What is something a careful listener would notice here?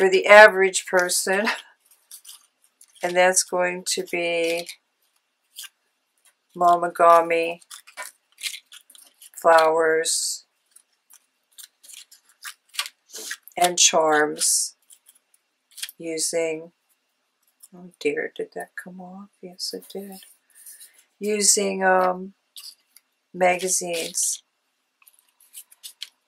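Paper pieces rustle and crinkle as hands handle them.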